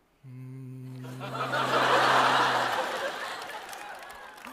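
An audience laughs loudly in a large hall.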